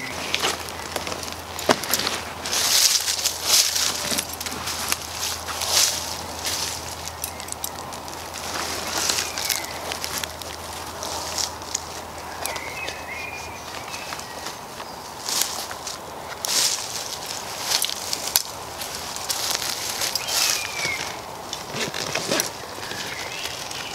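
A tarp rustles and crinkles close by.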